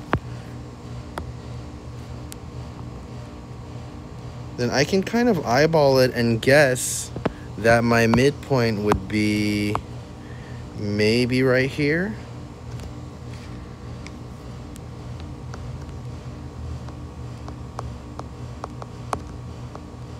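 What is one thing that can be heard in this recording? A stylus taps and scratches on a tablet's glass.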